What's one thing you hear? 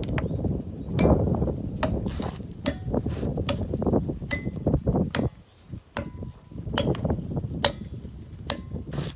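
A hammer strikes metal wedges with sharp ringing clinks.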